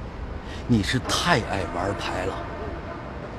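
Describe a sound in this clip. A middle-aged man speaks up close with animation.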